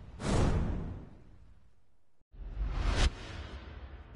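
A deep whoosh swells up and then fades away.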